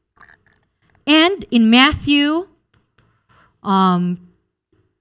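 A woman speaks into a microphone with animation, close by.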